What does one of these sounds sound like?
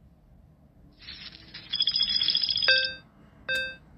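Coins jingle and clatter in a burst.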